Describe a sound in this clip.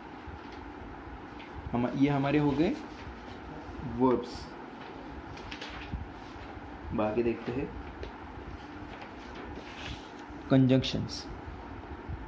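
A paper page turns over with a soft rustle.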